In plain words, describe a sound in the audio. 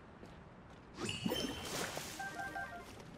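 Something in a game bursts with a loud, icy crash.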